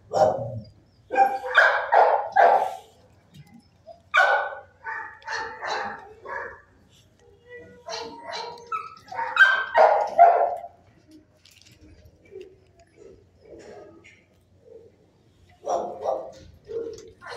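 A dog sniffs close by.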